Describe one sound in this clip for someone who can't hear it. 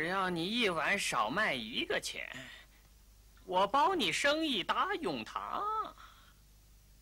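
A middle-aged man talks with animation, in an exaggerated sing-song voice, close by.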